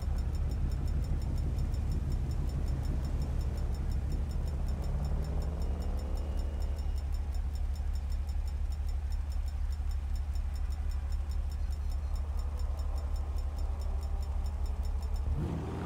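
A car engine hums steadily, revving up once.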